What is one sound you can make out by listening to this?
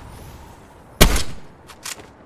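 A single loud rifle shot cracks.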